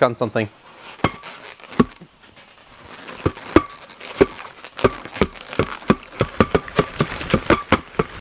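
Rubber balloons squeak and rub together as they are swung about.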